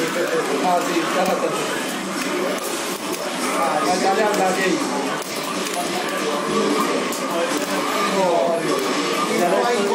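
Fighting game music and punches play loudly through a small loudspeaker.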